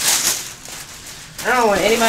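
Fabric rustles as it is shaken.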